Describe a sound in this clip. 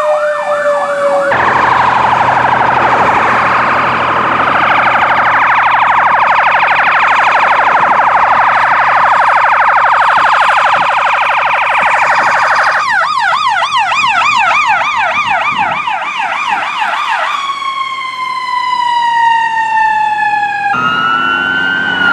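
A siren wails loudly close by, switching between a steady rise and fall and a fast yelp.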